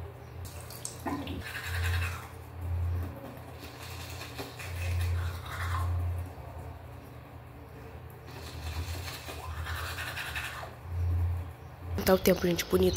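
A toothbrush scrubs against teeth in short bursts.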